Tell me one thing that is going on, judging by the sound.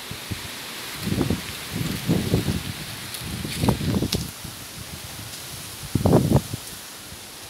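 A young woman talks nearby in short bursts.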